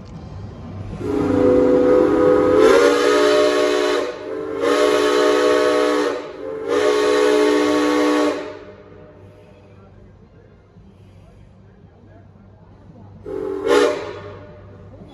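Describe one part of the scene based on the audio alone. A train horn blows several long blasts and one short one nearby.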